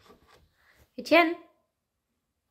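A baby squeals briefly up close.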